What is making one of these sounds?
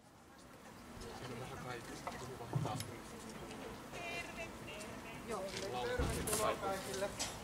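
A woman sings into a microphone through a loudspeaker.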